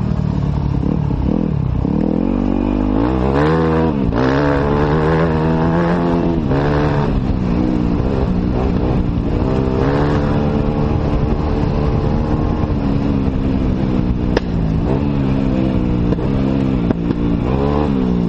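A dirt bike engine revs and roars up and down close by.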